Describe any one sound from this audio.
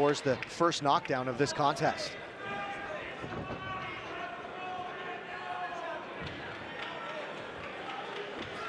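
A crowd murmurs and chatters in a large hall.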